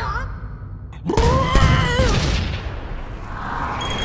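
A cartoon creature screams in a high, strained voice.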